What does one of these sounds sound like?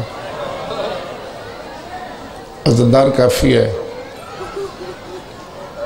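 A middle-aged man speaks calmly into a microphone, amplified through loudspeakers.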